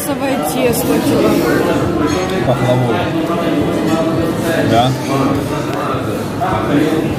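Several adults chatter together nearby.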